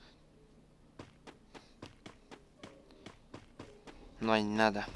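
Footsteps thump on wooden stairs in quick, regular steps.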